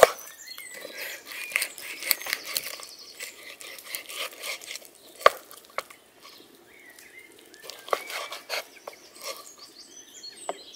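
A knife slices through raw chicken.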